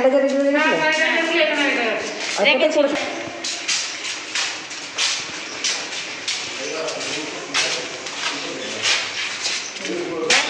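A middle-aged woman speaks with agitation, close by.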